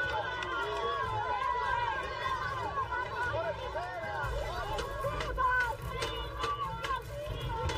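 A crowd of women shout and clamour loudly close by.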